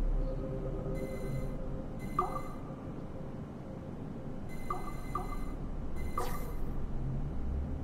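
Short electronic chimes sound several times.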